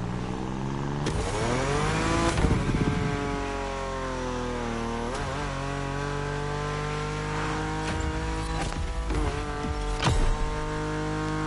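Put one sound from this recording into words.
Exhaust pops and crackles from a fast car.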